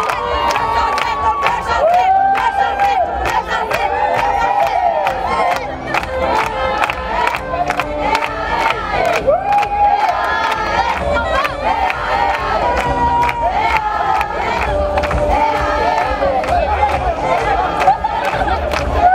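A crowd of young women sings.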